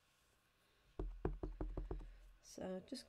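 A sheet of plastic crinkles and rustles as hands handle it.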